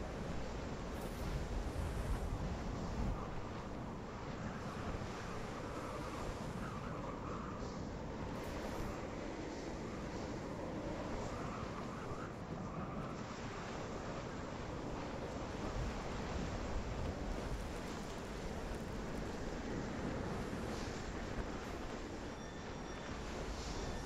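Wind howls steadily across open snow.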